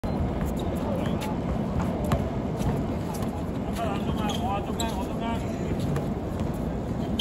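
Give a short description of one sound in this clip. A basketball bounces on a hard outdoor court.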